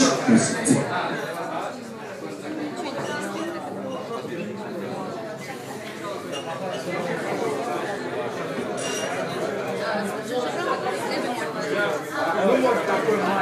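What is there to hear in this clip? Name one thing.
A crowd of men and women chatters loudly nearby.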